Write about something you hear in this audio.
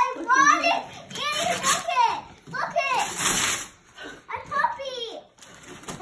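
A boy rustles and tears wrapping paper.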